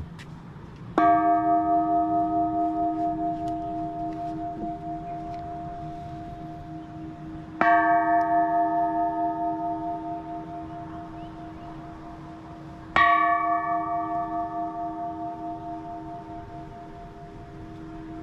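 A large metal bell is struck with a wooden log and rings out, its tone slowly fading.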